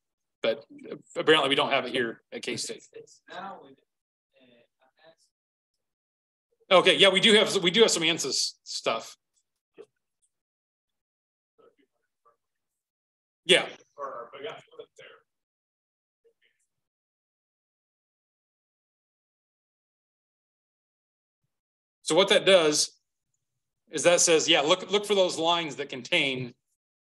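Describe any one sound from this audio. A man talks calmly into a microphone, pausing between phrases.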